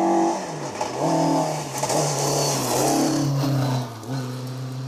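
Gravel sprays and pelts the ground as a car slides past.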